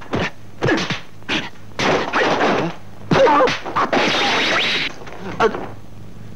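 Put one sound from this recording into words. A man shouts sharply in short bursts.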